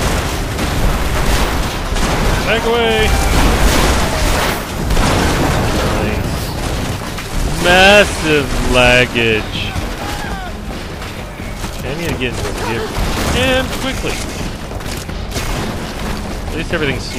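Heavy explosions rumble and crash nearby.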